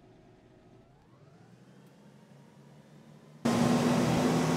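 A bus engine revs up as the bus pulls away, heard from a distance.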